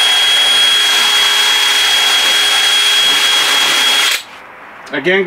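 A power drill whirs loudly and steadily, then stops.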